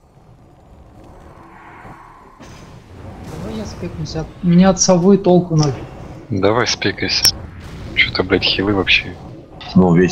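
Magic spells crackle and burst in a fast fight.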